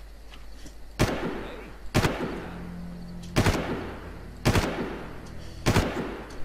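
A rifle fires single loud shots that echo briefly.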